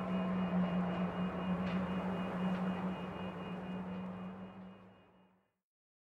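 Game music plays with a steady drone and fades out.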